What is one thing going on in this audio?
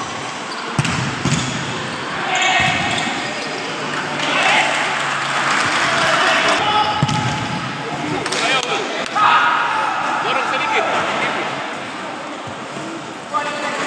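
A ball thuds as players kick it in a large echoing hall.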